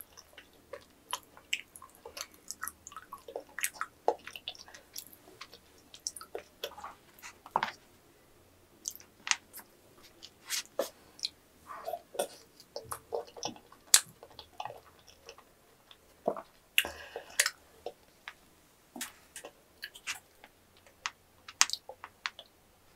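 A young woman chews food with wet smacking sounds close to a microphone.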